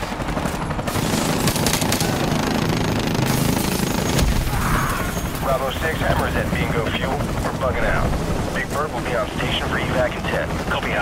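A helicopter's rotor thrums overhead.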